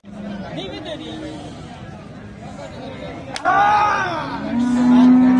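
Men talk loudly nearby, outdoors.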